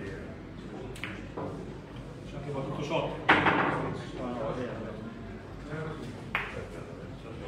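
Billiard balls click against each other and thud off the cushions.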